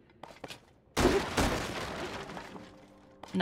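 Wooden crates smash apart with a crash.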